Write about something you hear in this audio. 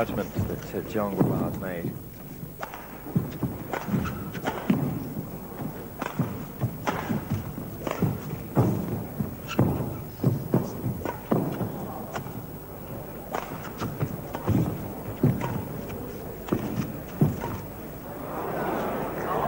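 A shuttlecock is struck sharply with rackets, back and forth.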